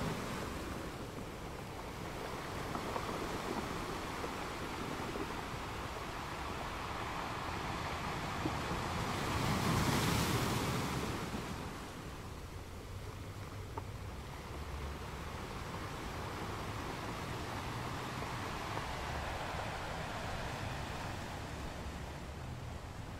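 Ocean waves roll in and crash steadily against rocks, with one louder crash near the middle.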